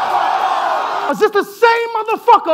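A young man raps aggressively into a microphone, loud and close.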